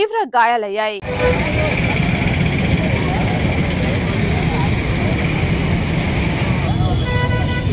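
A crowd murmurs outdoors amid street noise.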